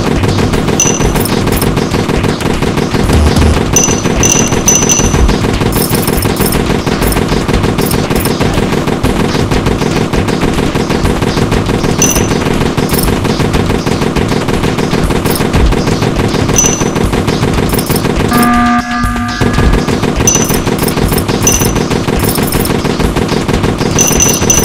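Rapid gunfire crackles steadily throughout.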